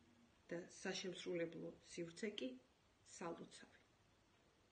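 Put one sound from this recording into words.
A woman speaks close to a microphone with animation.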